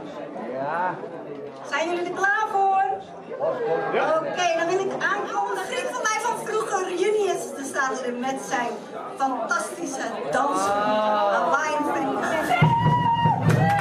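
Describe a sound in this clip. A woman sings into a microphone, heard through loudspeakers in a large echoing hall.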